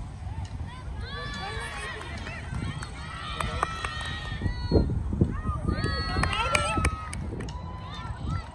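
Young girls cheer and shout excitedly at a distance.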